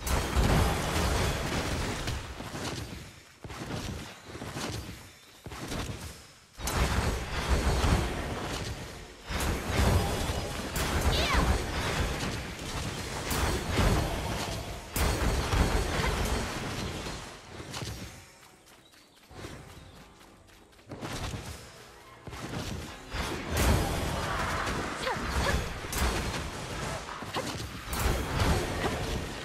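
Magic spells burst and crackle in a game fight.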